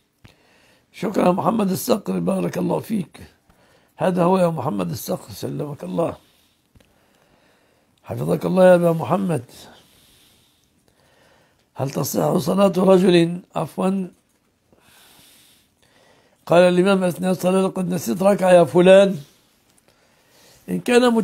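An elderly man speaks calmly and slowly into a close microphone, pausing between phrases.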